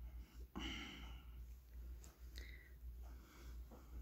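A nail polish brush strokes softly across a fingernail.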